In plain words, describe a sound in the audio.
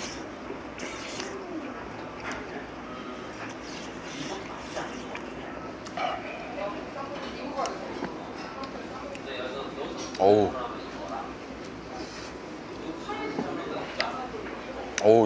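A young man chews and slurps food noisily close by.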